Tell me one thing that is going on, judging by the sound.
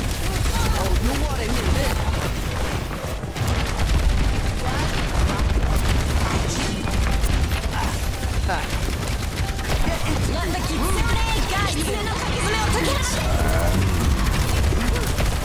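Energy weapons fire crackling, zapping shots in bursts.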